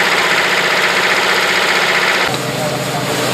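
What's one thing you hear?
An old tractor engine idles with a steady chugging.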